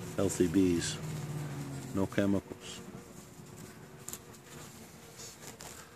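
Bees buzz softly around a hive entrance.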